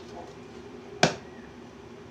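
A metal casing knocks once against a hard surface.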